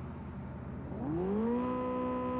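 A car engine revs up sharply, rising in pitch.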